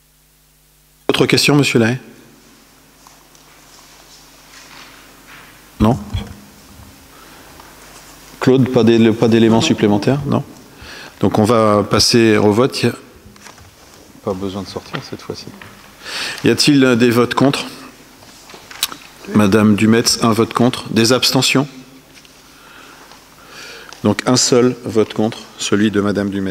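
An adult man speaks into a microphone over loudspeakers in a large echoing hall, pausing often.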